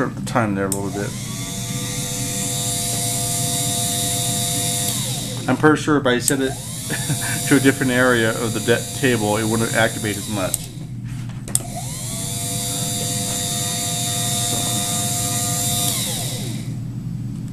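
An electric motor whirs with a steady whine, spinning up and winding down several times.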